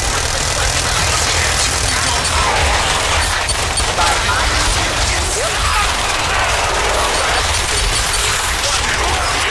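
Gunshots and game combat sounds crackle steadily.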